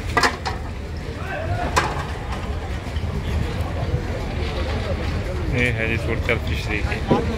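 A crowd of men chatter nearby outdoors.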